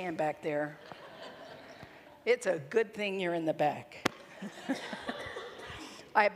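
A middle-aged woman speaks with animation into a microphone in a large echoing room.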